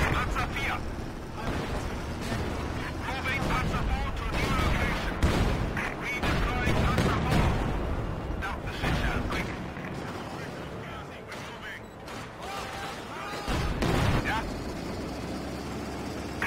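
Tank engines rumble and treads clank.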